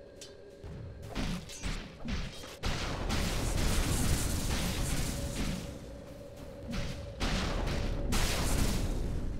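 Game spell effects crackle and boom during a loud battle.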